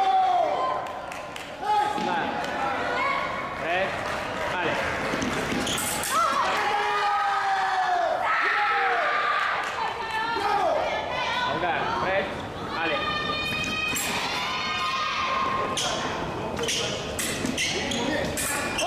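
Fencers' shoes squeak sharply on the floor.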